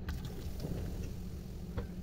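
Liquid pours from a bottle into a bowl.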